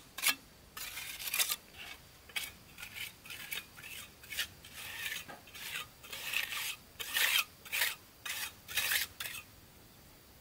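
A trowel scrapes and taps on bricks.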